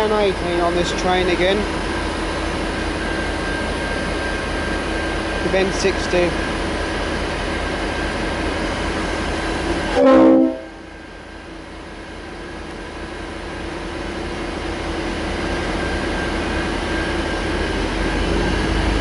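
A diesel-electric locomotive idles.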